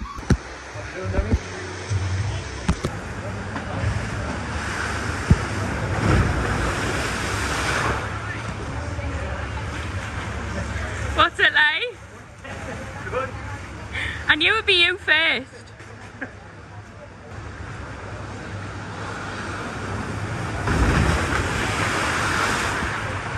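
Water rushes and splashes down a slide.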